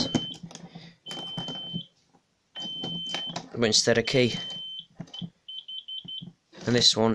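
A fire alarm control panel's buzzer sounds in long steady tones, then in short pulses.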